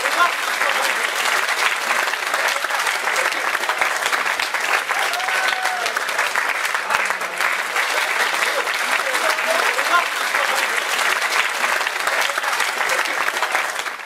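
A large crowd applauds loudly and steadily.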